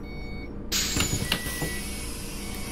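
Bus doors open with a sharp hiss of air and a clunk.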